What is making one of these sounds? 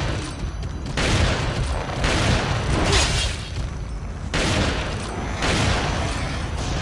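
A shotgun fires several loud blasts.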